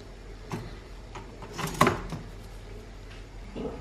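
A toaster lever clicks down.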